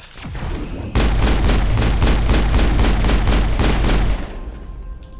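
A gun fires in a rapid, steady burst.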